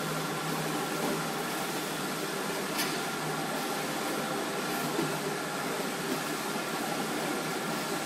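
A carton folding and gluing machine runs with a steady mechanical hum and belt rumble.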